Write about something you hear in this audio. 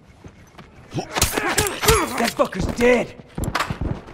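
Blows thud in a close scuffle.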